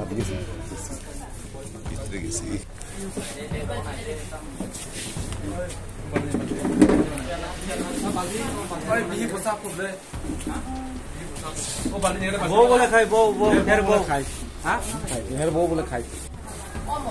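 Several men talk over one another.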